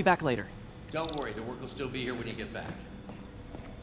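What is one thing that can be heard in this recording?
A middle-aged man answers calmly.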